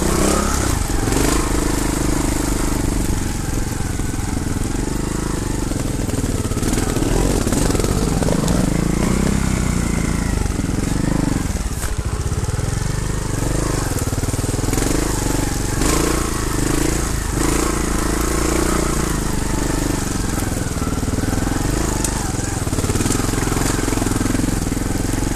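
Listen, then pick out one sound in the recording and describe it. Tyres crunch and rattle over loose stones.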